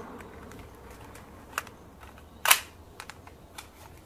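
A toy pistol clicks as it is handled.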